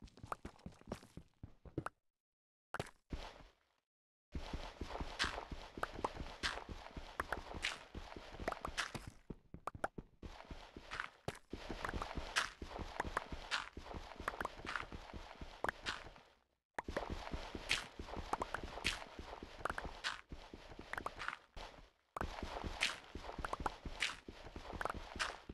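A pickaxe chips repeatedly at stone blocks.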